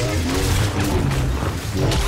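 Lightsabers hum and clash.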